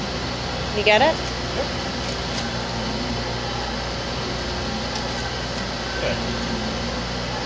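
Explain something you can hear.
A machine hums steadily nearby.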